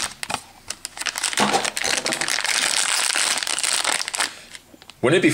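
A foil packet crinkles loudly as it is handled.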